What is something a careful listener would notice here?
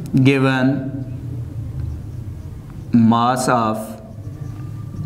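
A man speaks calmly and clearly, as if explaining, close by.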